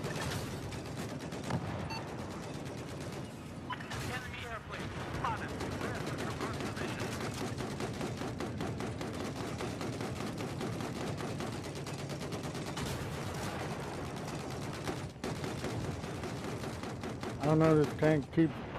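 Rapid machine-gun fire rattles continuously.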